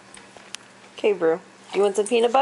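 A dog whines in a high voice.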